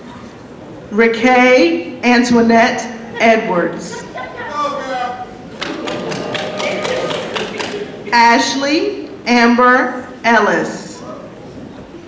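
A woman reads out names over a loudspeaker in a large echoing hall.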